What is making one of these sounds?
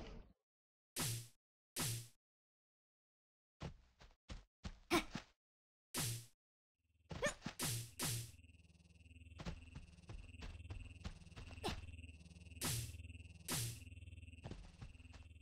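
Footsteps tread on stone and wooden boards.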